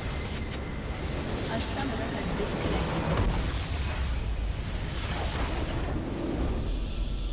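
A base structure explodes with a deep boom.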